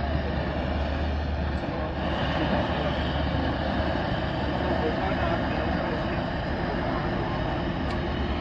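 A gas torch hisses steadily close by.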